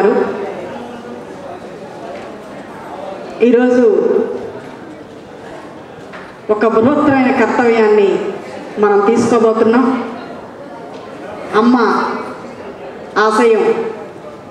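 A woman speaks with animation into a microphone, heard through loudspeakers in an echoing hall.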